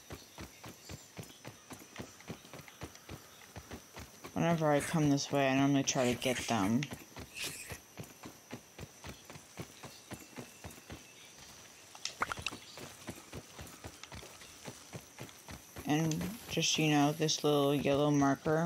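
Footsteps patter quickly on dry ground.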